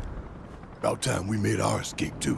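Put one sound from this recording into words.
A man speaks in a deep, low voice close by.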